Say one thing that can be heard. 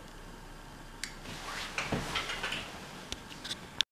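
Clothing rustles close by.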